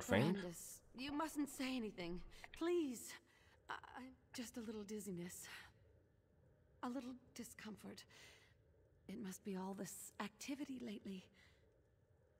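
A woman speaks softly and wearily.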